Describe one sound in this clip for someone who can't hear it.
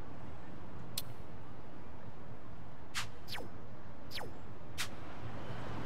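Short sharp menu clicks sound a few times.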